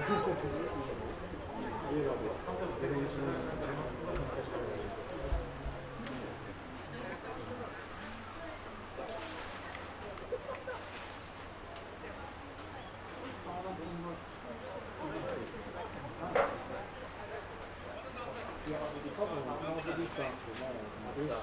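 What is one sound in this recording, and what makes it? A crowd of spectators chatters nearby, outdoors.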